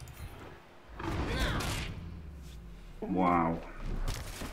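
A heavy thud sounds as a game character is knocked down.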